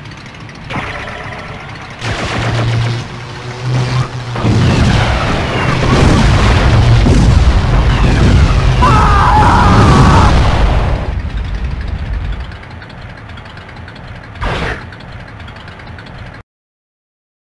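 A car engine roars and revs.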